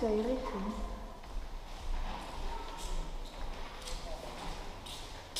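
A young woman speaks briefly and quietly, close by.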